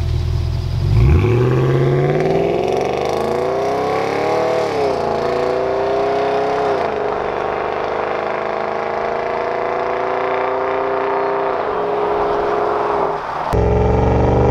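A car engine roars as the car accelerates away, shifting gears and fading into the distance.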